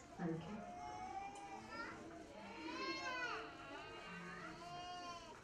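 A woman speaks softly and warmly close by.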